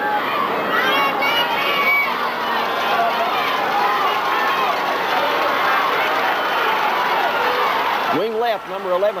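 A large crowd cheers and shouts in a stadium.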